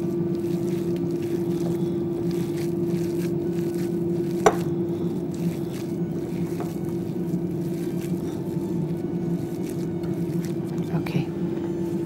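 Hands squelch through a soft meat mixture.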